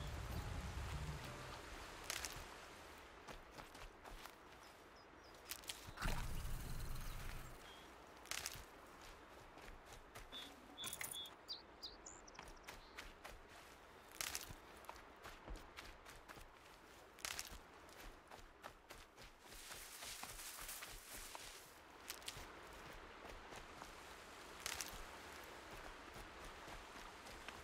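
Footsteps rustle through grass and over stones.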